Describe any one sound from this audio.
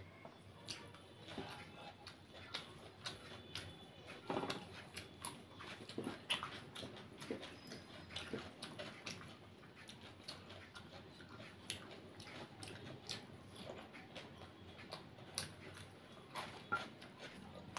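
A woman chews food noisily close to a microphone.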